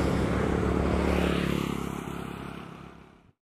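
Another motor scooter rides up and passes close.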